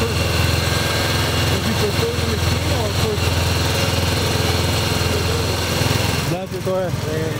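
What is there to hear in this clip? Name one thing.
A milking machine hums and pulses steadily.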